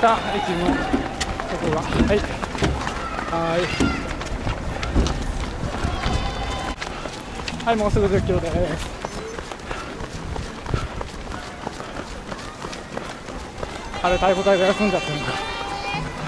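Running shoes patter steadily on the road.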